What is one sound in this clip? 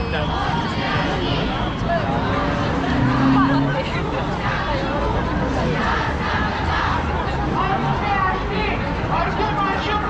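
A large crowd of women and men chatter and call out all around, outdoors.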